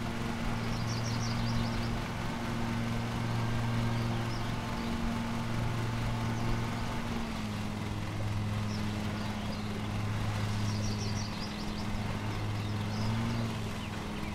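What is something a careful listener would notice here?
A lawn mower engine hums steadily.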